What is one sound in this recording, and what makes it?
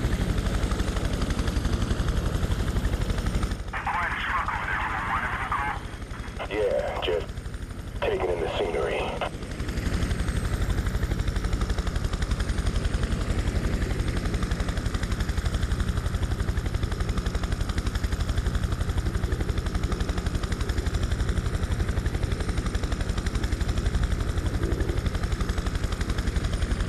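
Helicopter rotors thump steadily and loudly.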